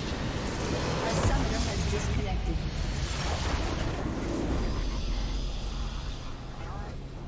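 Magic blasts and explosions boom and crackle.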